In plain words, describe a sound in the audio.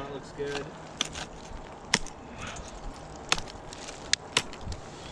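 An ice axe strikes hard ice with sharp thuds.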